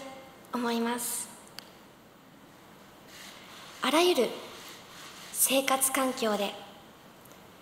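A young woman speaks clearly through a microphone in an echoing hall.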